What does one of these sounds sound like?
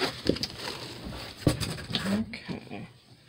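Plastic wrap crinkles as hands handle a package.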